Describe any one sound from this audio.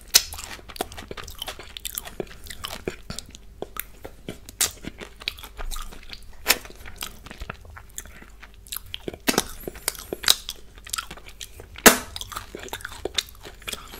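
Fingers tap and scrape against a cupcake's frosting.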